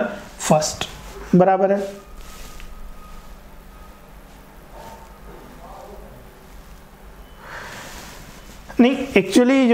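A man speaks calmly and clearly into a close microphone, explaining.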